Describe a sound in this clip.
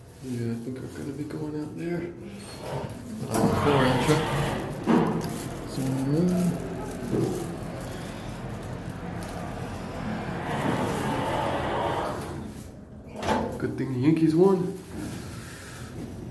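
An elevator hums softly as it moves.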